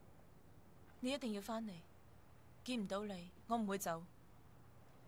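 A young woman speaks softly and with feeling.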